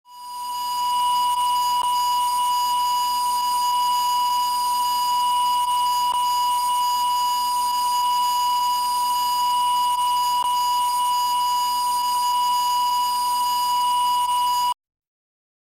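A steady, high-pitched reference test tone sounds without a break.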